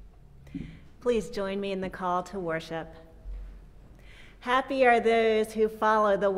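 A woman speaks warmly into a microphone.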